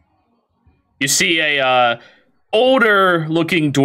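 A man speaks with animation over an online call.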